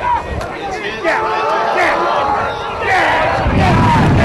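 A sideline crowd of men and boys cheers and shouts as a play runs.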